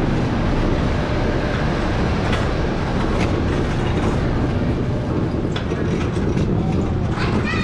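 A shopping cart's wheels rumble and rattle over a hard floor.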